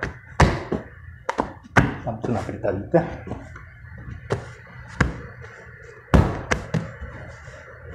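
Hands knead and pat soft dough.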